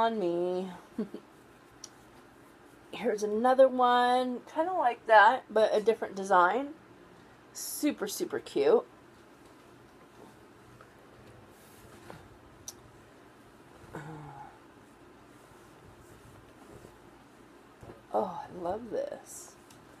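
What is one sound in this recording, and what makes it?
Fabric rustles as a woman handles clothing.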